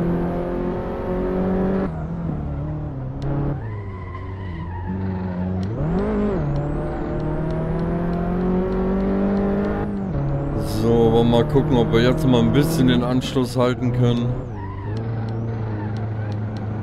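A car engine hums and revs as gears shift.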